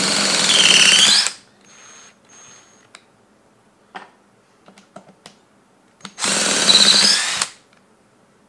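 A cordless drill whirs loudly as it bores into wood.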